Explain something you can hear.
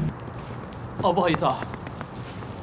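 A man speaks briefly and hurriedly nearby.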